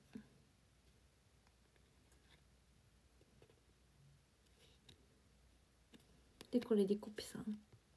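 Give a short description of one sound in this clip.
Paper rustles and crinkles as a sticker is handled.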